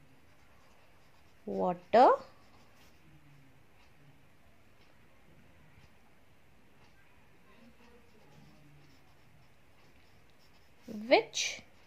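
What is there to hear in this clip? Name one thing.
A pen writes on paper.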